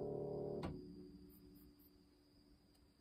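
A piano chord rings out and fades.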